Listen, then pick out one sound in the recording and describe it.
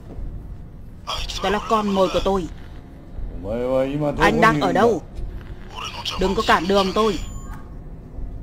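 A man speaks through a computer speaker in a slow, menacing voice.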